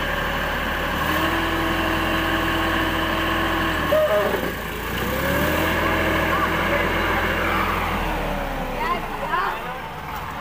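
A tractor engine roars and revs as its wheels strain in deep mud.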